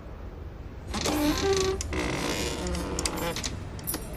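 A metal mechanism clatters and rattles loudly.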